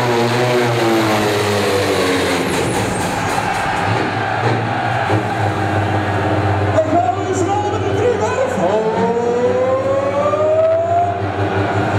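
A tractor engine roars loudly in a large echoing hall, its pitch rising and falling as it strains.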